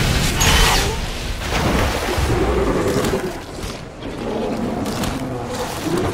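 A large beast growls deeply.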